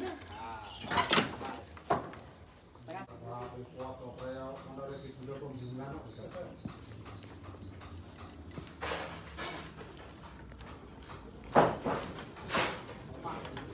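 Heavy wooden knocks and thuds ring out now and then.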